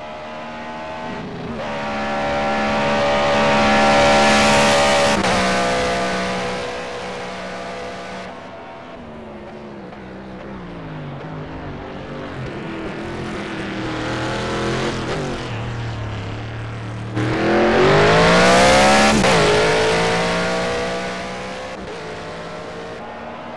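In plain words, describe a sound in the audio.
A racing car engine roars past at high revs, rising and falling in pitch.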